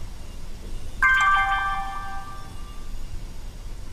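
A bright chime rings out.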